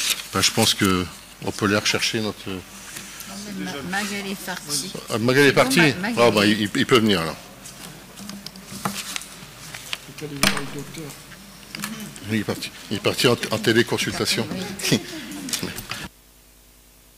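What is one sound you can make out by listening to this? An elderly man speaks calmly into a microphone in a large echoing room.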